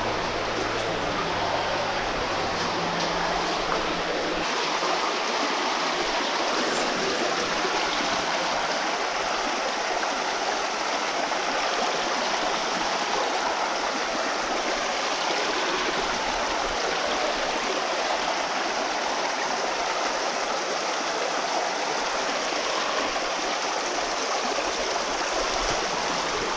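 Water rushes and splashes steadily through a metal pipe, with a hollow echo.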